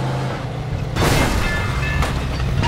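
A car crashes into something with a loud bang.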